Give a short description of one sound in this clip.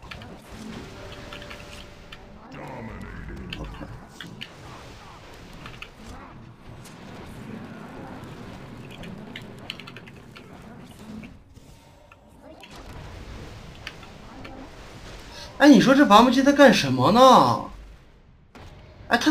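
Fantasy battle sound effects clash, crackle and burst in quick succession.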